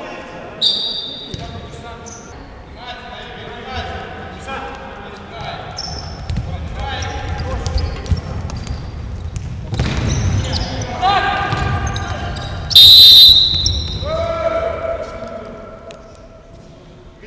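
Players shout to each other in an echoing hall.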